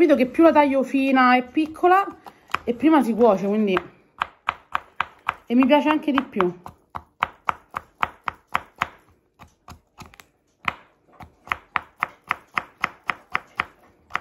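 A knife chops rapidly on a cutting board.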